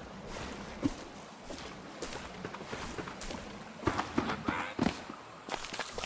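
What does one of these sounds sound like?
Oars splash in water as a small boat is rowed.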